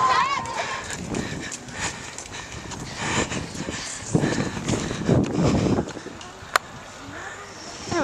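Footsteps patter on pavement.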